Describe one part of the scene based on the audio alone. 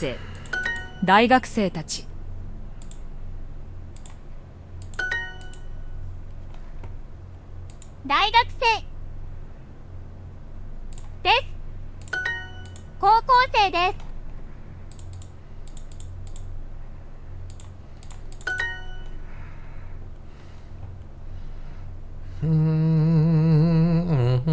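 A mouse clicks now and then.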